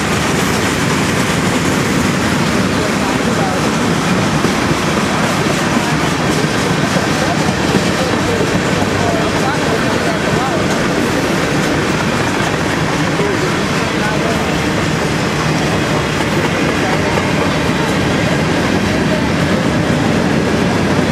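A freight train rumbles past close by, its wheels clattering steadily on the rails.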